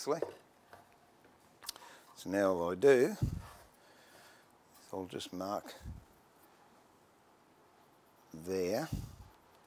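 An elderly man talks calmly into a microphone, in short phrases with pauses.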